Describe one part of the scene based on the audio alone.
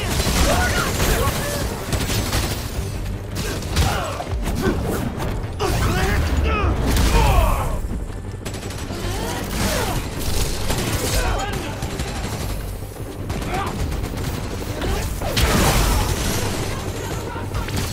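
Punches and kicks land with heavy thuds in a brawl.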